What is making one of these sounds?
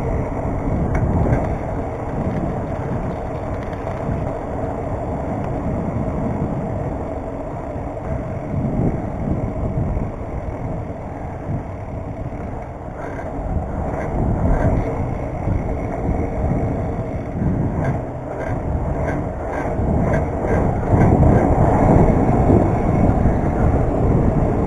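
Wind rumbles and buffets against a moving bicycle's microphone.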